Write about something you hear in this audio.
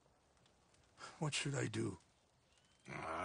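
A man answers quietly in a rough voice.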